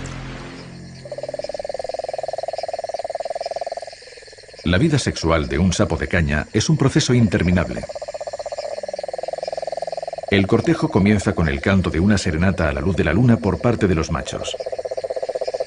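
A toad gives a long, steady trilling call.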